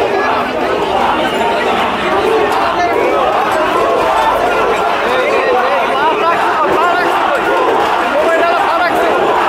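A crowd of young men shouts and clamours outdoors.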